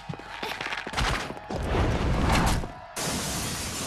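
A flaming bolt whooshes through the air.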